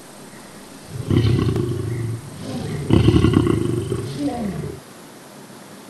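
Big cats snarl and growl as they fight.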